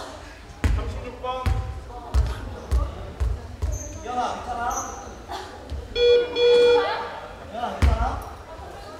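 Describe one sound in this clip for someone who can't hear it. A basketball bounces on a hardwood floor in an echoing gym.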